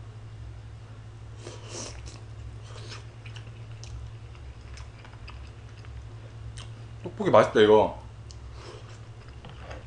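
A young man chews and slurps food noisily.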